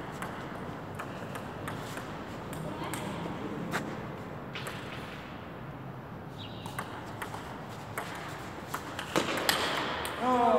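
A table tennis ball clicks back and forth on paddles and a table in a large echoing hall.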